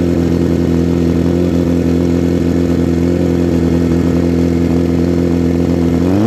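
A drag racing motorcycle idles with a deep, steady rumble.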